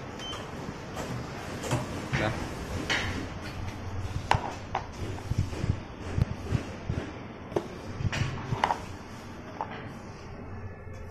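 Plastic cups knock and rattle as they are handled.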